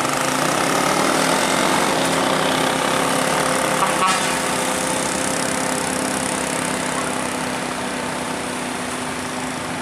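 A motorcycle engine buzzes past.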